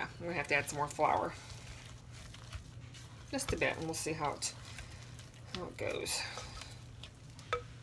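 A spatula scrapes and stirs thick dough in a bowl.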